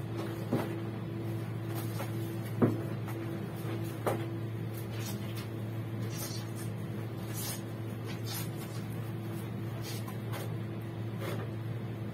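Water splashes and sloshes as clothes are washed by hand in a tub.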